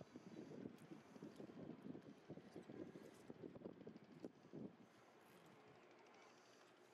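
A mesh net rustles softly as it is handled.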